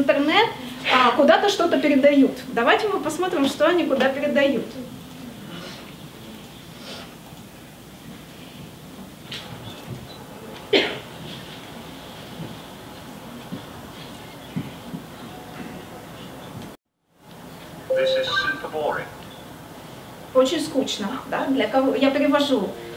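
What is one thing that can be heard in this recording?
A young woman speaks calmly and clearly nearby, pausing between phrases.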